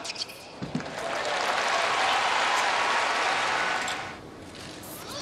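A crowd applauds and cheers in a large open arena.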